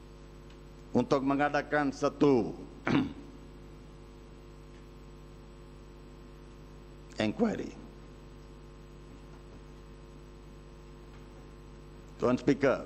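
An elderly man speaks into a microphone in short bursts with long pauses.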